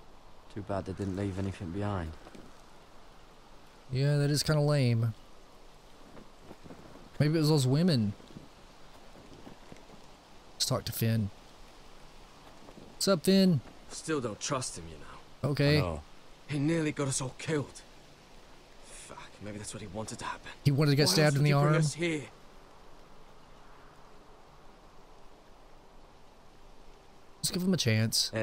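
A young man speaks calmly and quietly, close by.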